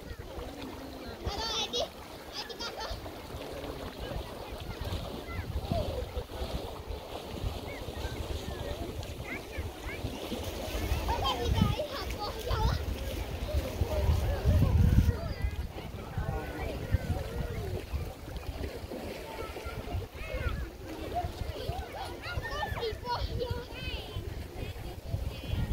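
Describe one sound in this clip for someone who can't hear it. Water splashes as a person wades and swims through a lake.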